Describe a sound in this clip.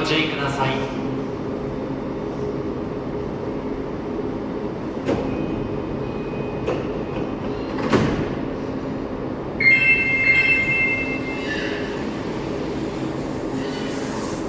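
A stopped train hums steadily.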